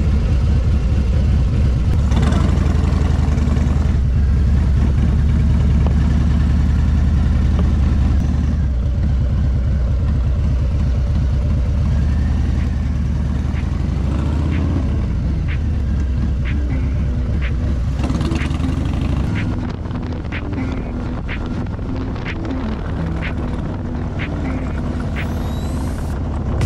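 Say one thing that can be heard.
A motorcycle engine rumbles steadily up close.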